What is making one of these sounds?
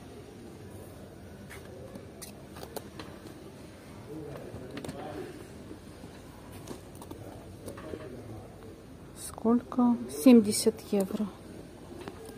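Shoes rustle and bump softly as a hand handles them.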